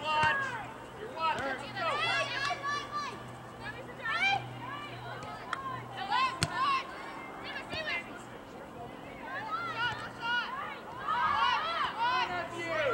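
Young female players shout and call out across an open field.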